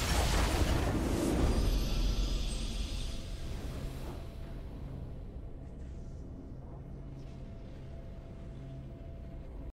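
A video game victory fanfare plays.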